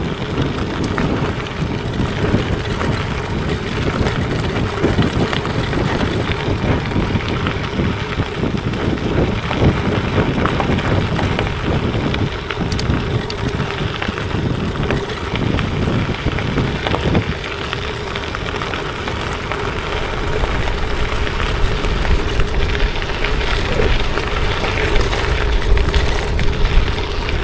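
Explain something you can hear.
Bicycle tyres crunch steadily over gravel.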